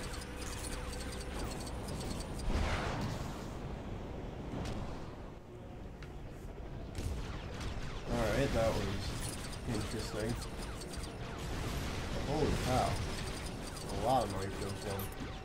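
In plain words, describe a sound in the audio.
Laser guns fire in quick zapping bursts.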